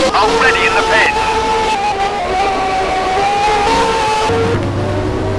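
A racing car engine screams at high revs, rising and falling in pitch.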